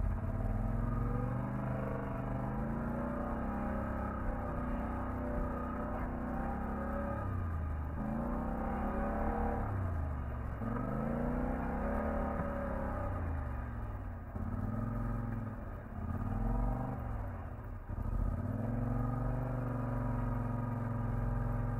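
An ATV engine roars and revs up and down close by.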